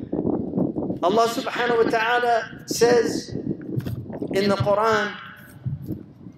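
A man chants loudly through a loudspeaker, echoing across an open field.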